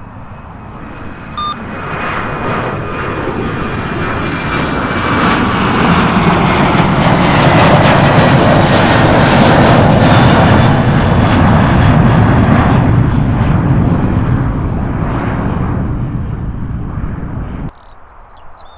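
A jet airliner roars loudly overhead, building and then fading as it climbs away.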